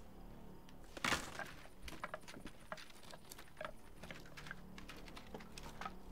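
Hands rummage through a container, with small knocks and rustles.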